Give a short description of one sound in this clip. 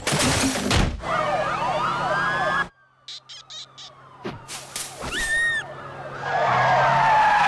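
Police sirens wail as cars speed along a road.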